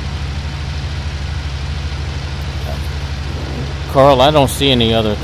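A propeller plane's engine drones steadily and low.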